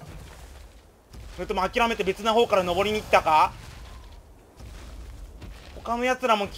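A large creature's heavy footsteps thud on rocky ground.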